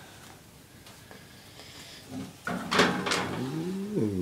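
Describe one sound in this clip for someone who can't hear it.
A metal baking pan scrapes and clatters into an oven.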